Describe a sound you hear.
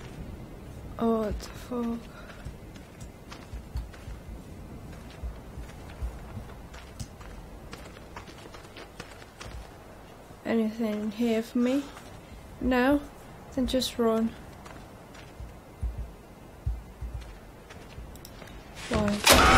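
A young woman speaks in short bursts, close to a microphone.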